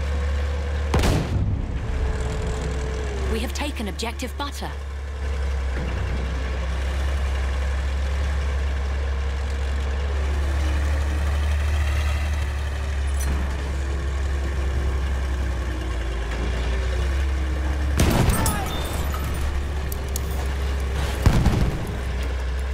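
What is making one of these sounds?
Loud explosions boom now and then.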